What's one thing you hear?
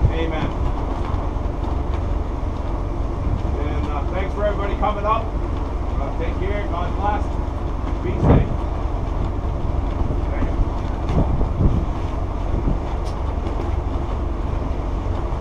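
Strong wind roars across the microphone outdoors.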